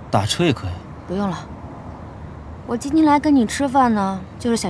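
A young woman speaks firmly nearby.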